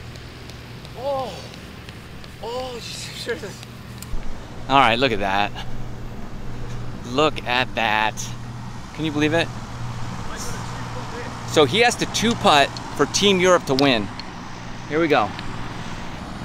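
A young man shouts and talks excitedly outdoors.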